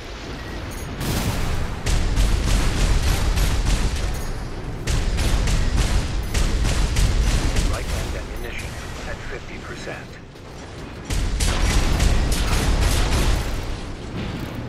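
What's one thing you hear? Rapid gunfire rattles in long bursts.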